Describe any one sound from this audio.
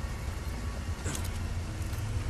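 A gunshot cracks sharply.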